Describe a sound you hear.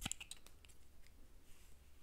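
Hair rustles softly close to a microphone.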